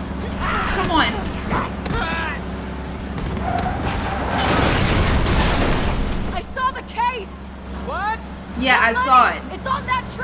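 A young woman talks and exclaims with animation, close to a microphone.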